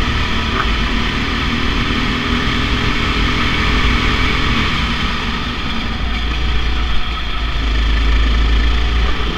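A kart engine buzzes loudly up close, its pitch rising and falling with speed.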